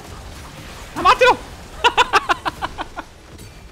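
A young man laughs loudly into a close microphone.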